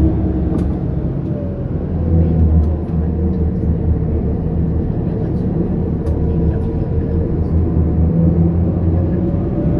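Strong wind rumbles steadily outdoors.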